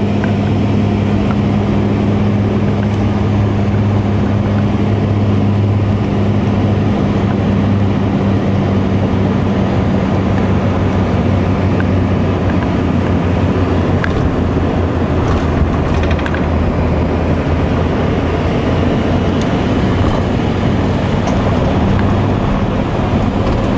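Wheels rumble over a runway as an aircraft rolls along.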